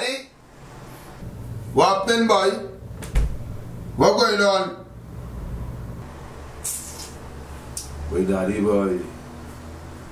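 A young man talks into a phone nearby.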